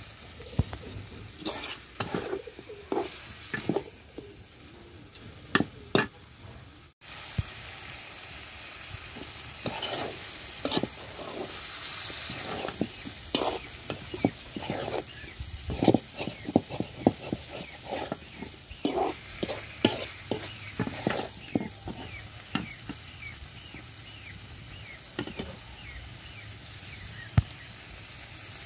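A metal spatula scrapes and clatters against an iron wok while stir-frying.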